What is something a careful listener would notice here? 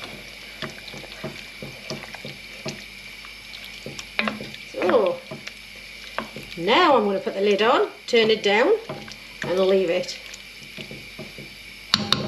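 A wooden spoon stirs a thick stew and scrapes against a pot.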